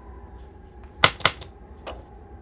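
A tool drops onto a wooden floor with a thud.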